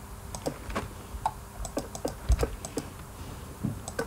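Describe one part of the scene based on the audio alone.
Small soft clicks sound as blocks are placed.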